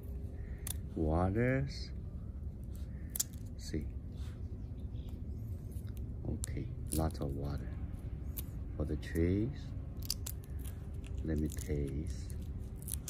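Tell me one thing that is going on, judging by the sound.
Fingers peel the rough skin off a small fruit with a soft crackle.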